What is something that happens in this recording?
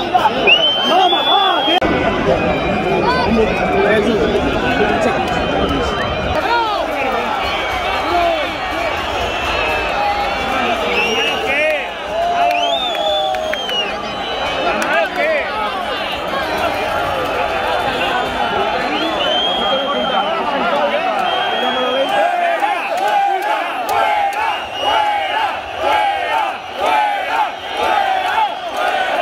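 A large football crowd chants and shouts in an open-air stadium.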